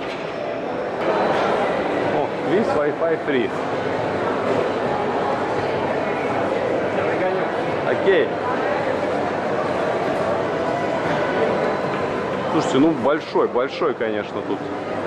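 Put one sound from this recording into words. A crowd murmurs and footsteps echo through a large, echoing hall.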